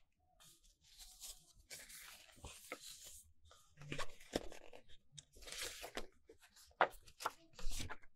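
A paper poster crinkles as it is unfolded.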